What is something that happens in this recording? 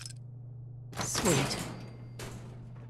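A heavy metal gate creaks open.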